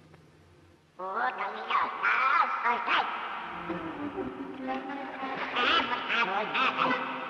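A cartoon duck squawks and sputters angrily.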